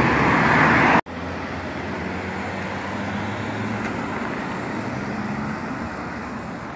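A car engine hums steadily as a car turns and drives off.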